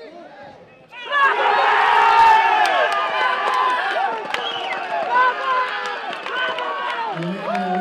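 A crowd of spectators and team-mates suddenly erupts in loud cheering and shouting.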